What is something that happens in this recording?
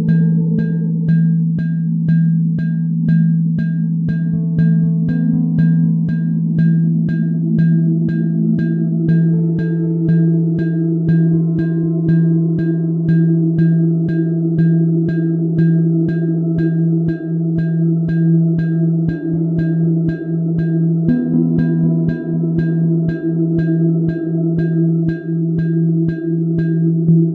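Electronic music plays with a steady, fast ticking beat.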